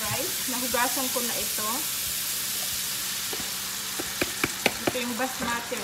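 Cooked rice tumbles into a pan.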